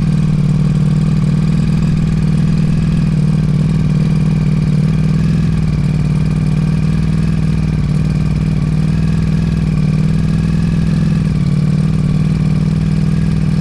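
A motorcycle engine roars steadily at high revs.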